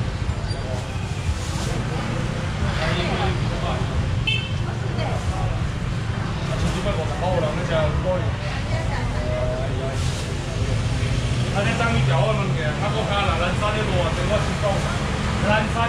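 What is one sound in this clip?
A crowd of men and women chatter busily all around, outdoors.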